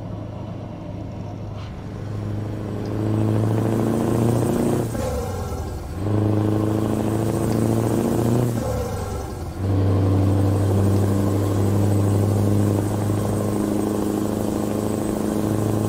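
A truck's diesel engine rumbles steadily and revs up through the gears.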